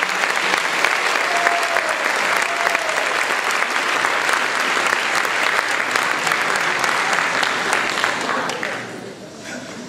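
A large crowd applauds loudly in an echoing hall, then the clapping dies down.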